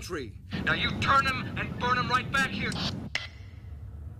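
A young man speaks over a helmet radio.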